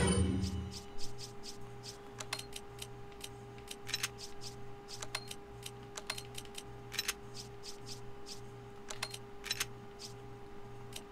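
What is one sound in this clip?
Soft menu clicks tick again and again.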